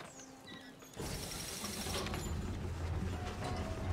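A tram hums as it starts to move.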